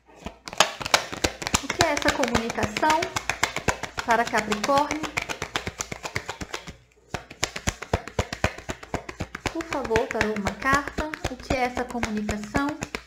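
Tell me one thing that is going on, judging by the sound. Cards are shuffled briskly with quick, crisp flicks and rustles.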